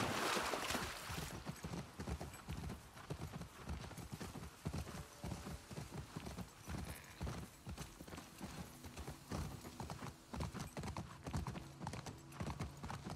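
A horse's hooves thud steadily at a trot.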